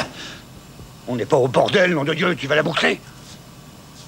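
An older man answers gruffly, close by.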